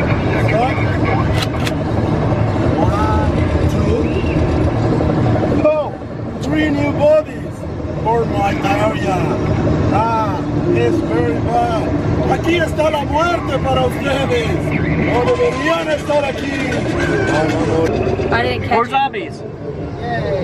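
A man answers from outside through an open car window.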